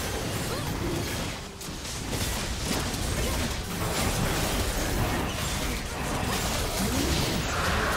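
Fantasy battle sound effects clash and burst in quick succession.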